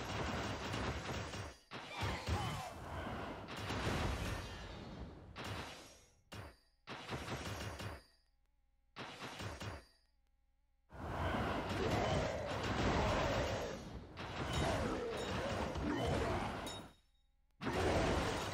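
Cartoonish fight sounds of blows and magic blasts burst out in quick succession.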